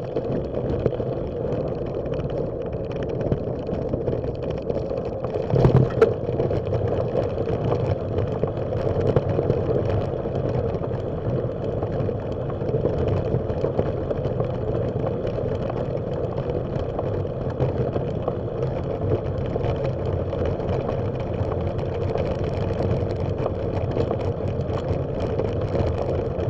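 Bicycle tyres rumble steadily along a bumpy path.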